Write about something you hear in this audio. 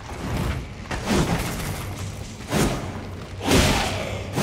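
A sword clashes and strikes with loud bursts.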